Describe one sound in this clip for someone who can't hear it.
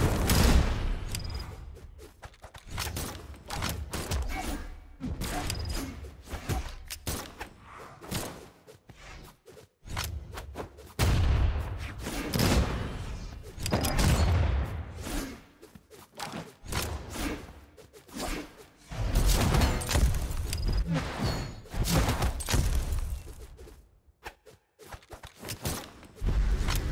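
Cartoon fighters thump and smack each other with rapid hits.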